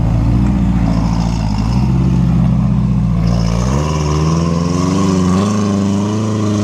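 Tyres grind and crunch over rock.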